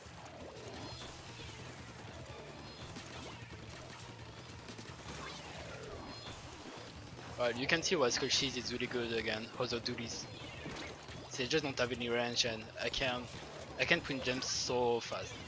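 Video game blasters fire and splat with wet bursts.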